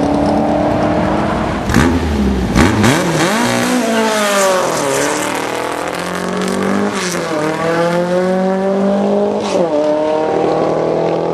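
A car engine roars loudly as it launches and revs up through the gears.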